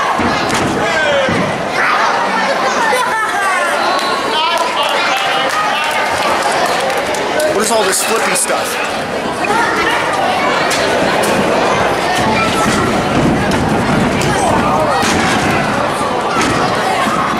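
A crowd chatters and cheers loudly in a large echoing hall.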